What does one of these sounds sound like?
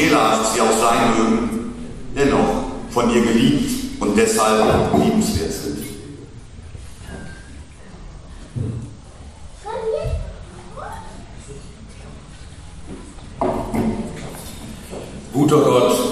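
A man speaks through a microphone with animation in an echoing hall.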